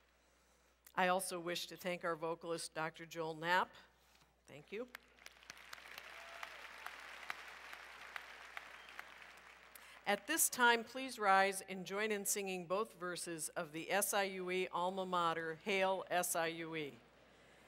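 A middle-aged woman speaks calmly into a microphone over loudspeakers in a large hall.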